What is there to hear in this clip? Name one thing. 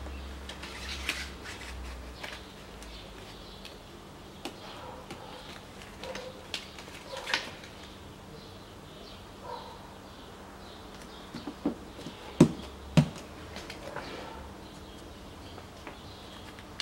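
Backing tape peels and crinkles.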